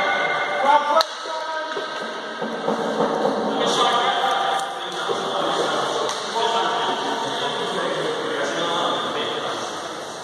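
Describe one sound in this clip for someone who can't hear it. Hockey sticks clack against a ball and the floor.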